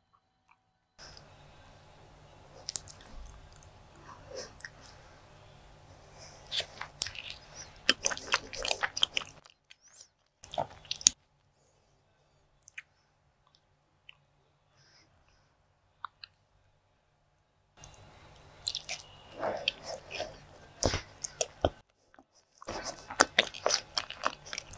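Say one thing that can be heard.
A woman chews soft food wetly and close to a microphone.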